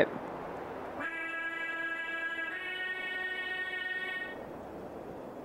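A shimmering magical chime rings steadily, then fades out.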